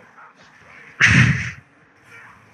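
A lightning spell bursts with a loud crackling boom.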